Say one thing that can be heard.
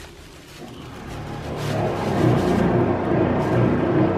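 Plastic crinkles and rustles as a cat digs around in it.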